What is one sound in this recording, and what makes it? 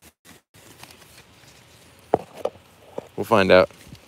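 Leaves rustle softly as a hand brushes through them.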